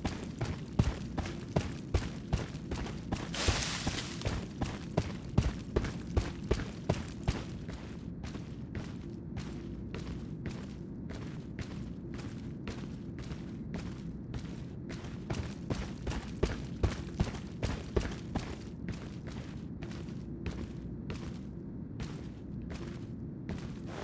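Footsteps crunch steadily on rough ground and gravel.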